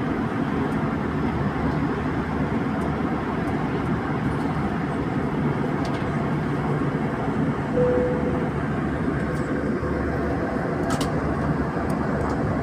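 A jet airliner's turbofan engines roar steadily at cruise, heard from inside the cabin.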